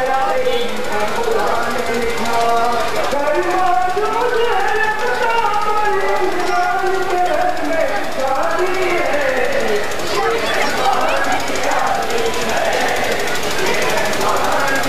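A large crowd of men chants together loudly outdoors.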